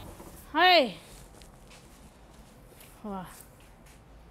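A middle-aged woman shouts twice.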